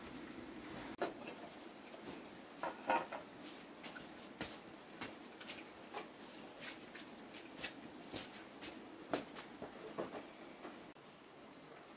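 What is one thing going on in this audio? Metal pans clink and clatter.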